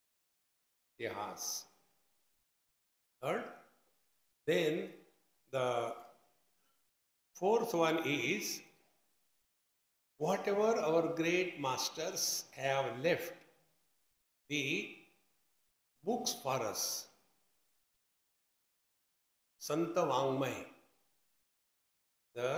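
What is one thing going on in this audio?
An elderly man speaks slowly and calmly into a microphone, in short phrases with pauses.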